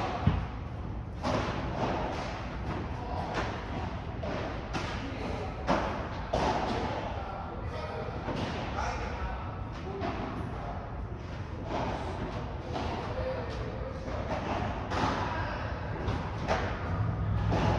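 Players' shoes squeak on the court.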